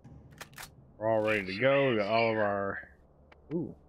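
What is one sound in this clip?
A man speaks with animation, close to a microphone.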